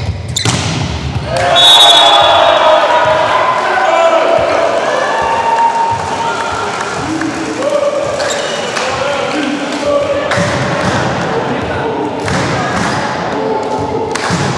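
Young men shout and cheer in an echoing hall.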